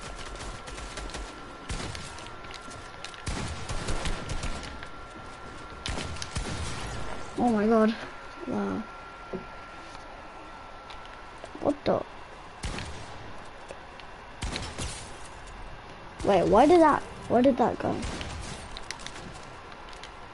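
Video game gunshots and building effects crack and thud in quick bursts.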